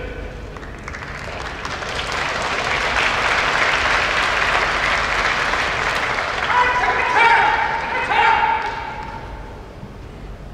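A crowd in a large hall cheers and applauds loudly.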